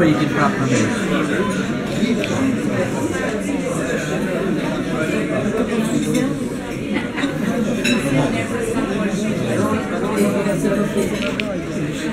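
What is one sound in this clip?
Several adult men and women talk over each other nearby, in a lively way.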